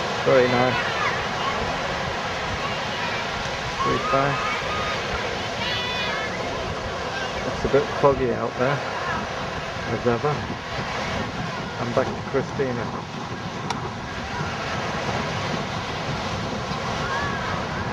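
Wind blows across an open beach.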